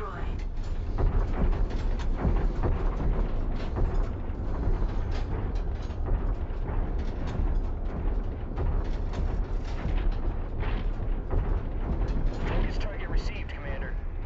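A heavy machine hums with a deep, steady rumble.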